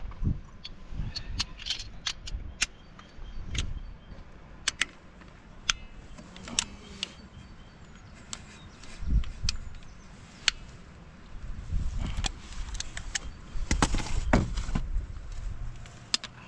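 Metal tools clink against engine parts.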